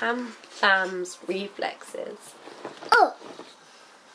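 A young girl talks in a high, excited voice close to the microphone.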